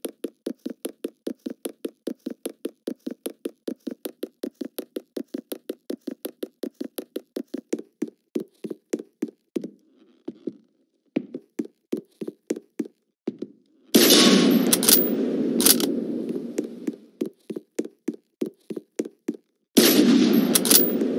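Footsteps thud quickly and steadily.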